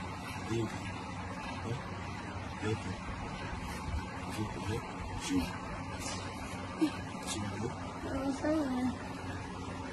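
A young man moans weakly in short bursts, close by.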